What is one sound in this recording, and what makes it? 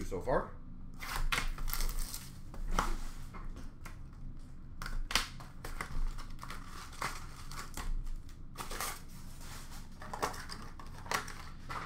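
Card packs rustle and crinkle as they are handled and opened.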